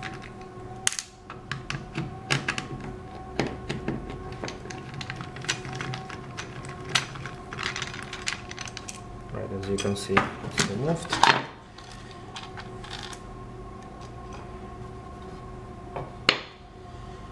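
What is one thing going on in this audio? Plastic parts click and tap as a hand handles a circuit board up close.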